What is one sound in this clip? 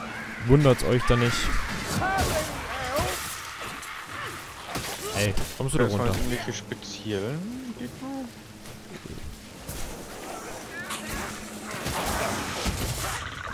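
Blades clash and strike with sharp impacts.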